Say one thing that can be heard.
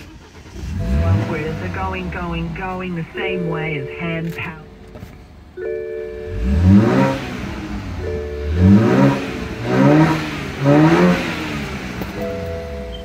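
A car engine's starter cranks repeatedly without the engine catching.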